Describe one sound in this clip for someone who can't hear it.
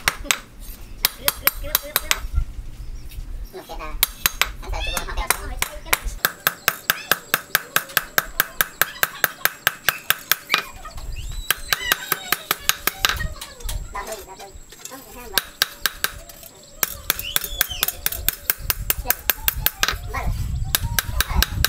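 A hammer rings sharply on hot metal against an anvil in quick, steady blows.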